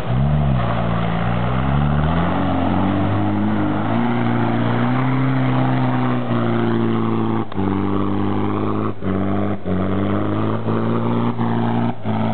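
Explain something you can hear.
An off-road vehicle's engine revs hard, rising and falling.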